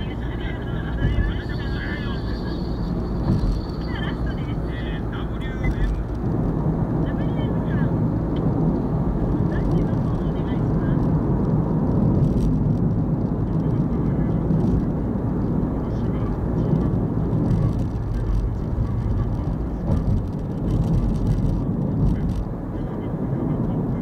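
A car engine hums steadily, with tyre noise heard from inside the car.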